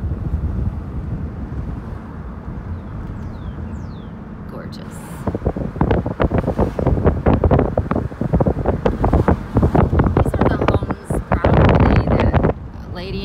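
A car engine hums and tyres roll steadily on the road.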